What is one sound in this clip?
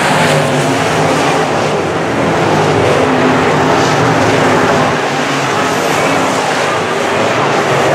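Race car engines rise and fall in pitch as cars pass close by.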